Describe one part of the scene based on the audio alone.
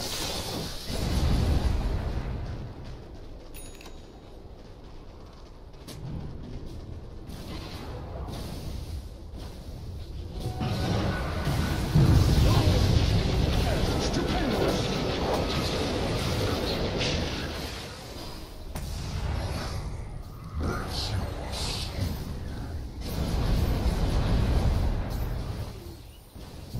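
Magic spells burst and crackle in a fantasy battle.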